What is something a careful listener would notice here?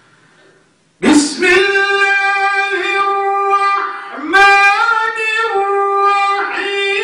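An elderly man sings a long, held melody loudly through a microphone.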